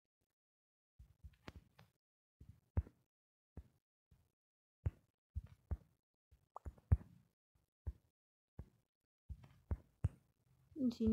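Soft clicks of phone keyboard keys as someone types.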